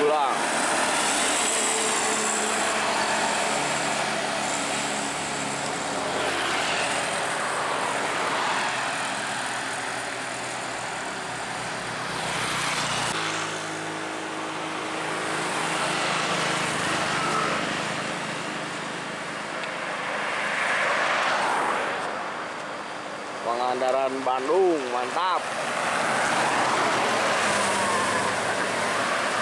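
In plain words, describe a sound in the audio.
A bus engine rumbles past, swelling and fading.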